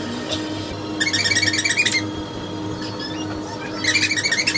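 A squeaky toy squeaks rapidly.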